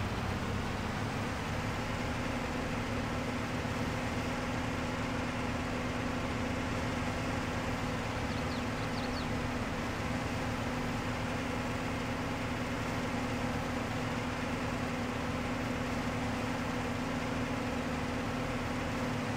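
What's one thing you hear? A tractor engine chugs steadily at low speed.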